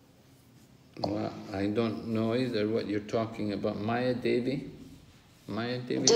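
An elderly man speaks close to the microphone.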